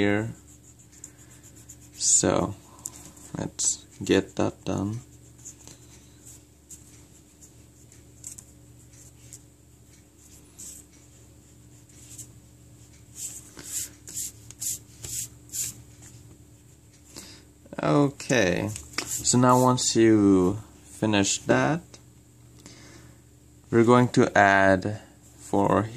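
A pencil scratches softly on paper.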